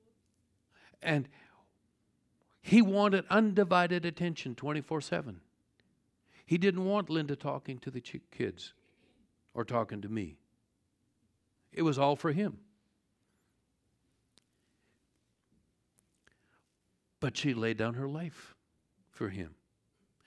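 A middle-aged man speaks calmly through a microphone, with pauses.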